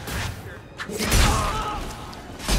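A magic blast bursts with a crackling whoosh.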